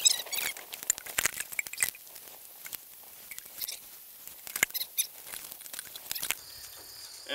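A steel safety chain clinks and rattles against a trailer coupler.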